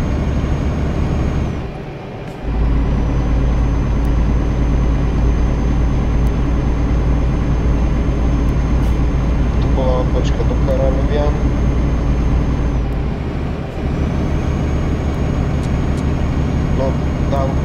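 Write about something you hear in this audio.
A heavy truck engine rumbles steadily, dropping briefly and picking up again.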